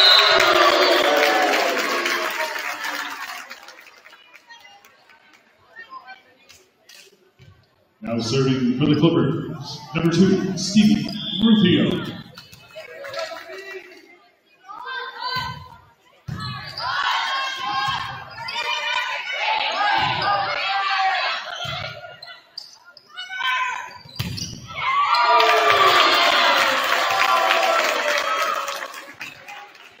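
A crowd cheers and claps in a large echoing gym.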